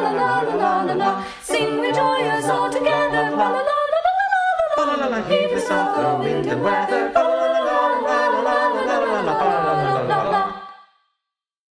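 Young men and women sing together in harmony.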